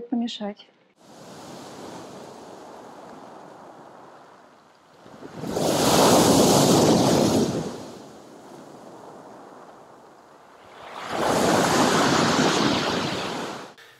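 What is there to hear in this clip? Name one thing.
Sea waves crash and wash over pebbles, outdoors.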